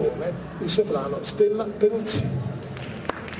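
A man speaks through a microphone on a loudspeaker in a large echoing hall.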